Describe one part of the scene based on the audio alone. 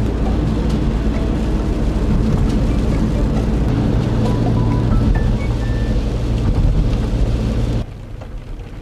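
Rain patters steadily on a car's roof and windscreen.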